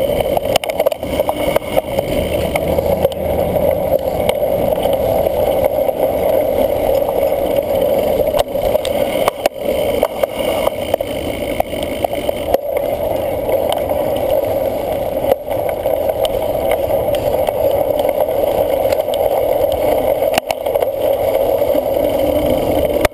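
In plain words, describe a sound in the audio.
A cyclocross bike rattles and clatters over bumps.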